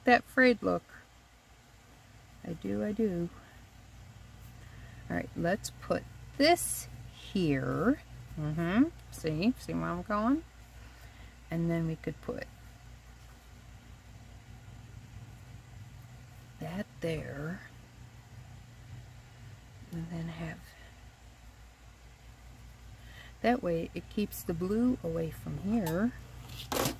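Cloth rustles softly as hands handle it.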